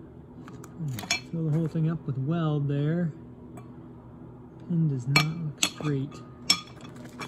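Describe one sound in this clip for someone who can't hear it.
A metal clamp clicks and clinks against steel.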